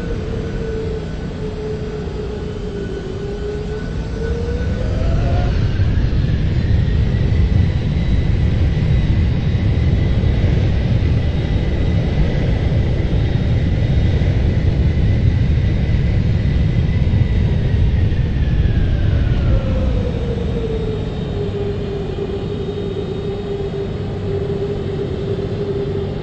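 A jet engine whines steadily, its pitch rising as it spools up and later falling back.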